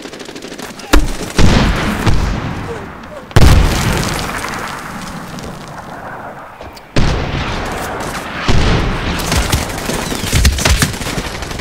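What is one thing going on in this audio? Explosions boom loudly and echo afterward.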